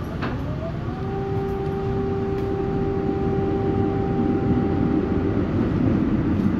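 A tram's doors sound a steady warning tone.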